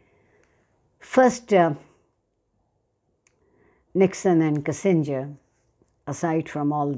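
An elderly woman speaks calmly and close by, in short phrases with pauses.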